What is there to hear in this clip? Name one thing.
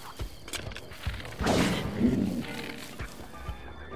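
A monster grunts and roars nearby.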